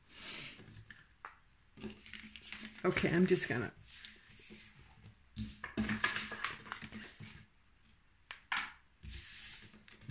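Playing cards slide and rustle across a smooth table.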